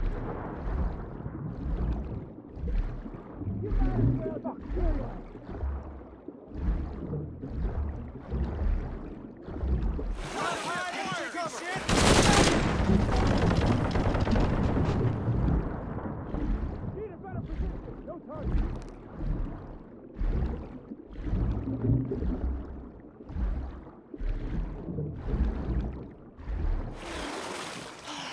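Water swirls and bubbles around a swimmer moving underwater.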